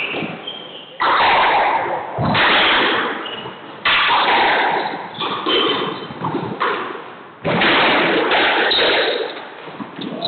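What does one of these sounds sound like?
A squash ball smacks hard against the walls.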